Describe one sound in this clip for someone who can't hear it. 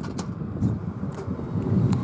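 A button clicks on a vending machine.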